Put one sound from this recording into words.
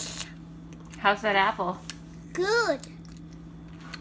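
A young girl talks softly close by.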